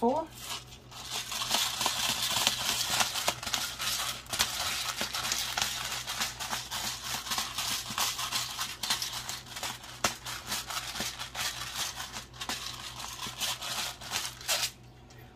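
A pepper grinder crunches and rattles steadily as it is twisted.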